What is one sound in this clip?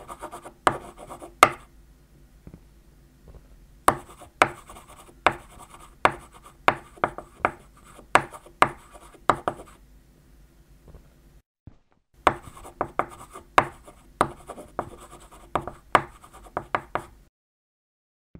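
Chalk taps and scrapes on a chalkboard in quick strokes.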